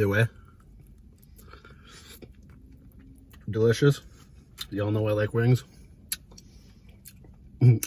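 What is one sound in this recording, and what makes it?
A man crunches food while chewing.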